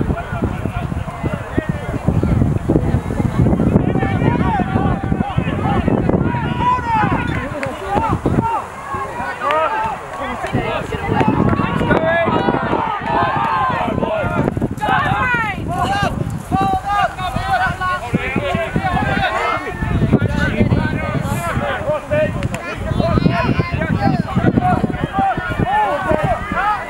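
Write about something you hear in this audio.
Wind blows hard across a microphone outdoors.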